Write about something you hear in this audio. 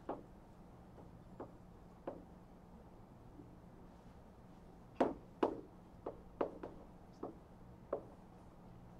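Chalk taps and scrapes on a blackboard in an echoing room.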